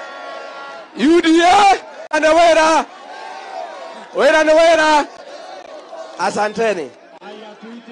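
A man shouts loudly through a loudspeaker in short bursts.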